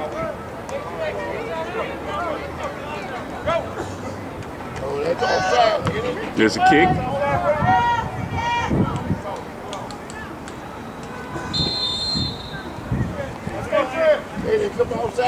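Men and boys shout and call out across an open field.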